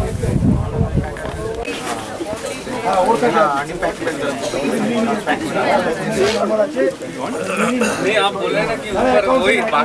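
Several adult men and women talk casually nearby outdoors.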